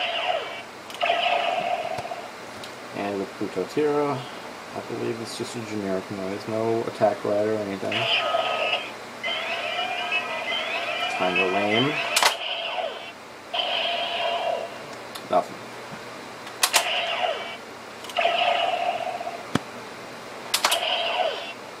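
Plastic parts of a toy belt click as they are pressed and snapped.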